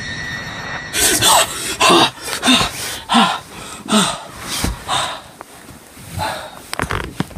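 A boy talks with animation close to the microphone.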